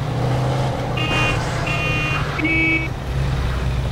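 Tyres screech briefly as a car skids through a turn.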